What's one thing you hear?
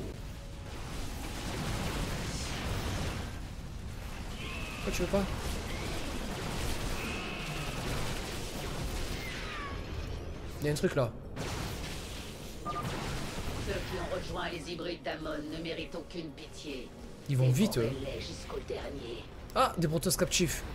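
Gunfire and laser blasts crackle in a game battle.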